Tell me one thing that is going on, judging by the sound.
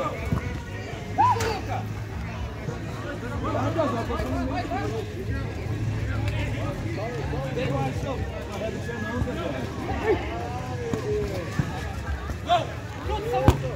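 Men shout to each other across an outdoor pitch.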